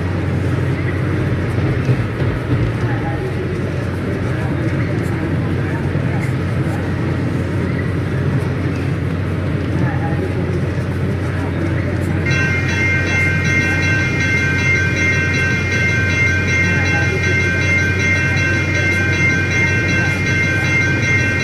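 A diesel locomotive engine rumbles steadily as the train approaches.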